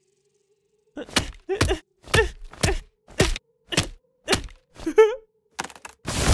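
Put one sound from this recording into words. An axe chops into a tree trunk with rapid thuds.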